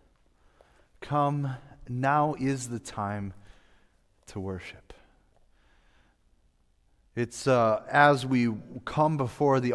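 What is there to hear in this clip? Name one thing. A young man speaks clearly through a microphone in a large echoing hall.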